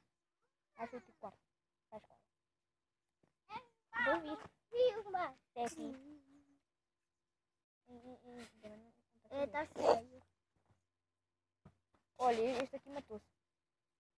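A young boy talks close to the microphone.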